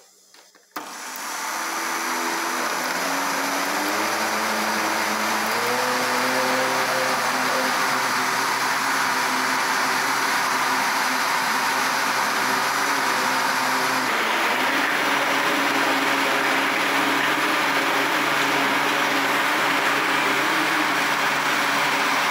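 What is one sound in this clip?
A blender whirs loudly and steadily as it blends liquid.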